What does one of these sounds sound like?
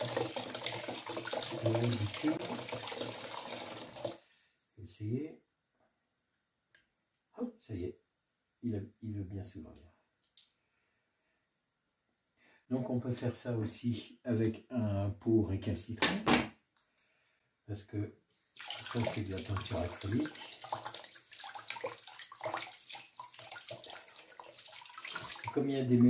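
Water runs from a tap into a basin.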